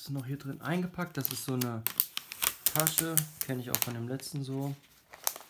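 A plastic film crinkles as it is peeled off.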